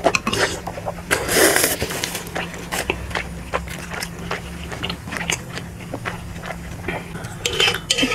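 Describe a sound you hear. A young woman chews food wetly and loudly close to a microphone.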